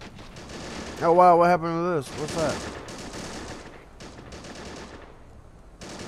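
Guns fire in sharp bursts.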